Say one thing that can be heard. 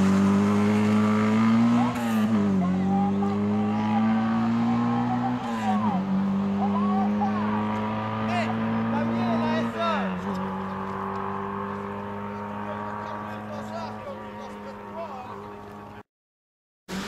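A rally car engine revs hard and roars, with the pitch dropping at each gear change as the car speeds away.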